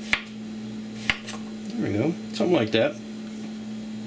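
A knife chops through a zucchini onto a plastic cutting board.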